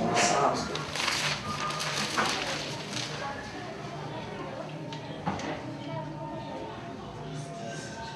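A newspaper rustles as its pages are handled.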